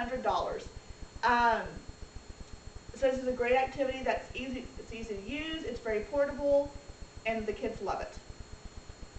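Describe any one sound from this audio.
A young woman speaks calmly to a room, heard from a few metres away.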